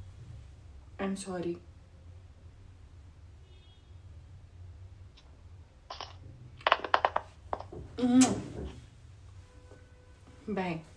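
A young woman speaks in short bursts close by.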